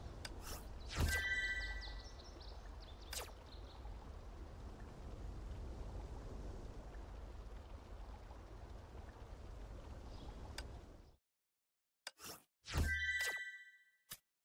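A game menu plays a bright chime.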